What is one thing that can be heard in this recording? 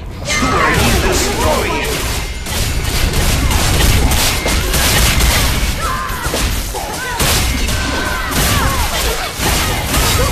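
Swords clash again and again in a fast battle.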